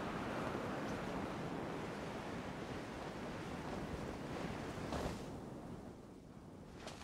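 Wind rushes steadily past, then fades.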